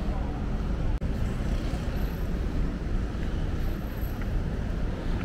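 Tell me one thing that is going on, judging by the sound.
Cars pass by on a nearby street.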